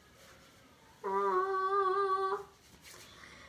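A young girl sings a short steady note.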